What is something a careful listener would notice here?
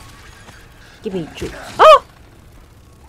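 A young man exclaims loudly into a close microphone.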